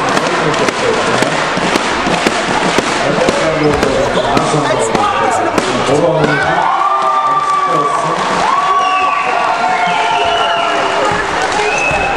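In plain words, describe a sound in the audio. A crowd of spectators murmurs and chatters in the background.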